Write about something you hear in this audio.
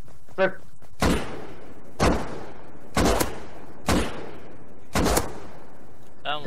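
A pistol fires several sharp shots, one after another.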